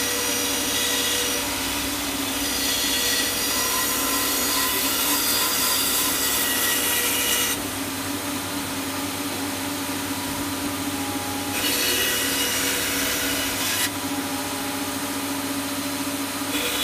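A band saw motor hums steadily.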